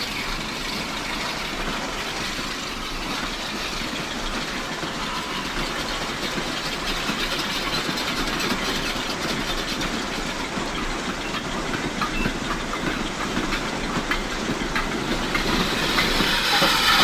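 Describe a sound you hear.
A small model locomotive hums and clicks along the rails.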